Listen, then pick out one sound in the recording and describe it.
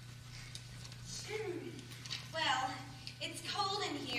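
Young women shriek and cry out.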